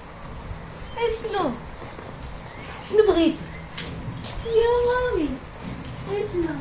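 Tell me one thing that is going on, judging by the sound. A dog whines and yelps.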